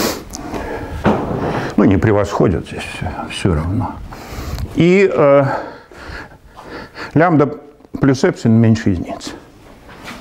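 An elderly man lectures calmly in a room with a slight echo.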